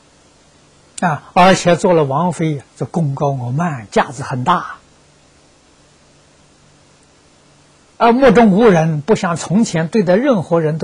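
An elderly man speaks calmly and with emphasis into a close microphone.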